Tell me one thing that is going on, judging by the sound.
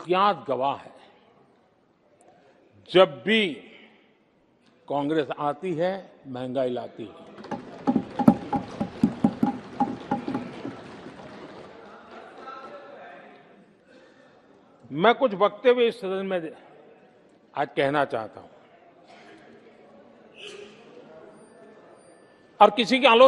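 An elderly man speaks forcefully into a microphone.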